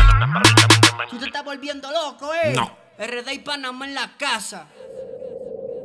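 A man raps energetically.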